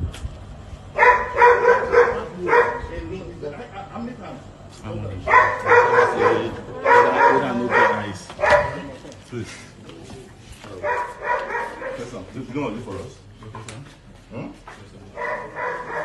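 Men talk back in raised voices nearby.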